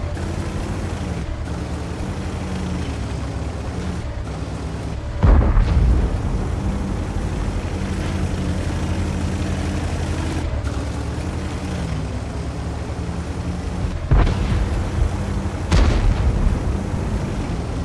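A heavy tank's engine rumbles as it drives.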